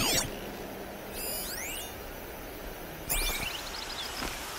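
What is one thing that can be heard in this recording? A shimmering electronic chime rings out.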